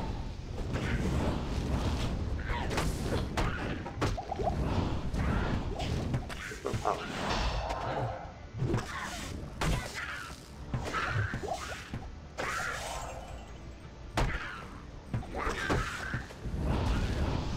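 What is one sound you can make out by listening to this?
Fiery spell blasts burst and crackle in quick succession.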